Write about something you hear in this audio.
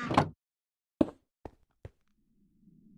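A block thuds as it is placed in a game.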